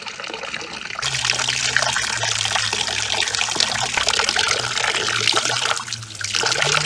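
Water splashes as hands stir and scoop in a basin.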